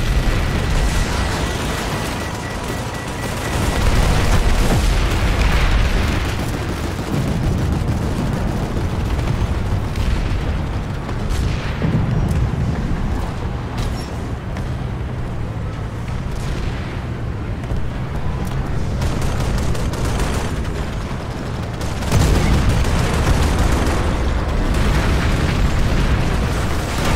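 Tank tracks clatter and grind.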